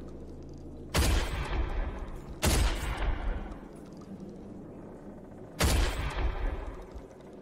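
A shotgun fires loud booming blasts that echo away.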